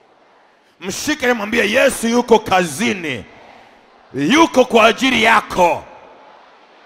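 A man preaches loudly and with animation through a microphone over loudspeakers.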